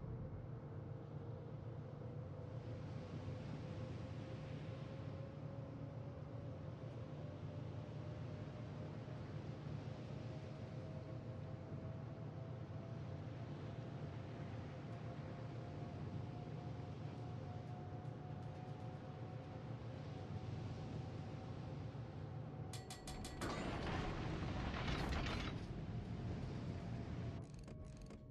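A warship's engines rumble low and steady.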